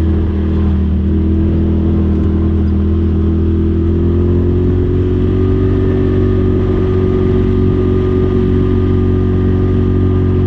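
Tyres crunch over a gravel track.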